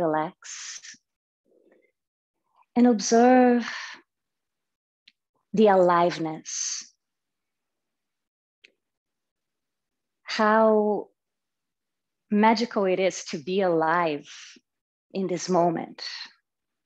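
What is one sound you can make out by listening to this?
A young woman speaks calmly and slowly over an online call, with long pauses.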